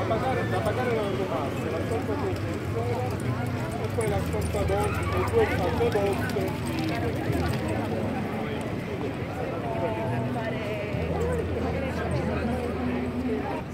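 Many adults chatter nearby and farther off.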